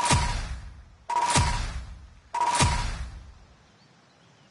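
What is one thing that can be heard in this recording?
Three heavy game reward sounds hit one after another, each ringing out and fading.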